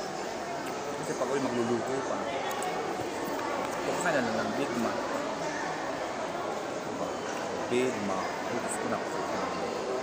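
A paper wrapper rustles.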